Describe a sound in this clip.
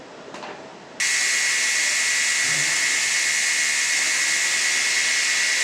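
A robotic arm whirs steadily.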